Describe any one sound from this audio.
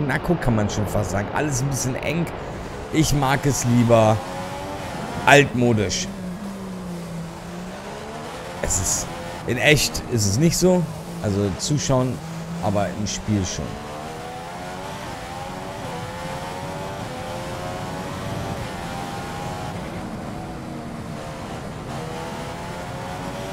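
A racing car engine screams at high revs, rising through the gears and dropping sharply under braking.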